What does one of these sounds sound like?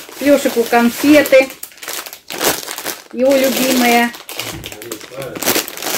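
A plastic packet rustles and crinkles in hands.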